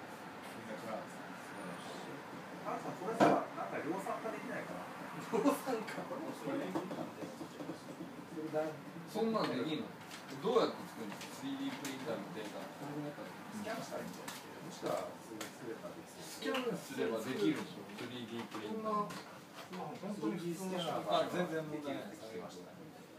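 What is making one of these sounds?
Several young men talk and chat nearby.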